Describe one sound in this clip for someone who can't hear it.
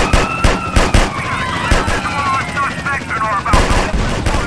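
Police sirens wail and warble.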